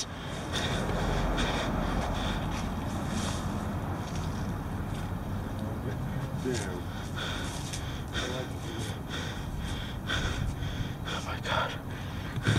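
A man talks close to a microphone in a low voice.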